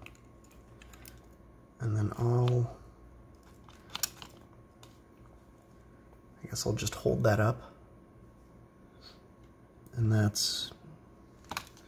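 A small plastic device clicks and knocks as hands handle it.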